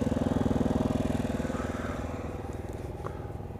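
A motorcycle engine idles close by and fades away.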